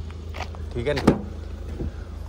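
A vehicle's rear door latch clicks open.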